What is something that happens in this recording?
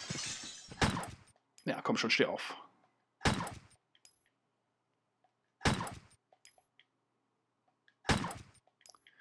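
A pistol fires sharp shots in an indoor space.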